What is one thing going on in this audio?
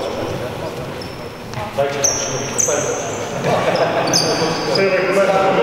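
Men talk and call out among themselves in a large echoing hall.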